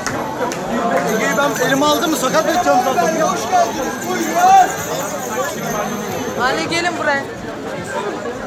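A dense crowd of men and women chatters all around outdoors.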